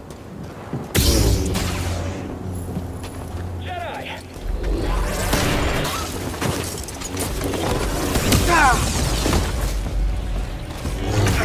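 A lightsaber ignites with a sharp crackle and hums.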